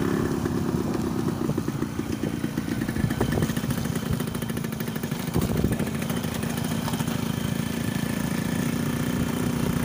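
A motorcycle engine thrums steadily close by.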